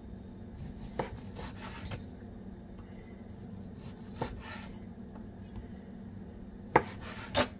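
A knife taps against a plastic cutting board.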